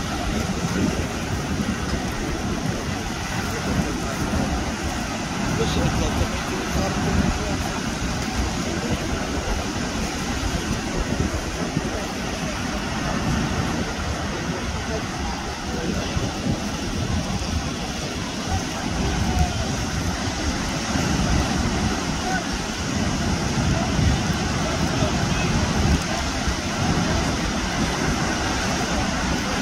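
Waves break and crash steadily onto the shore outdoors.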